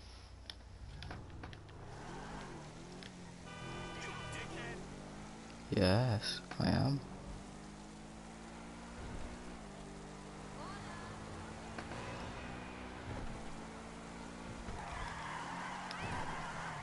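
A sports car engine revs and accelerates through the gears.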